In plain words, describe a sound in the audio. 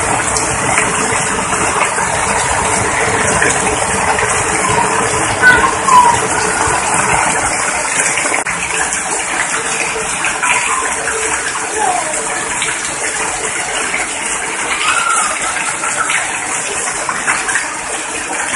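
Heavy rain drums loudly on an umbrella overhead.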